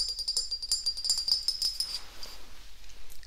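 Tapping and scratching on a hard plastic object close to a microphone.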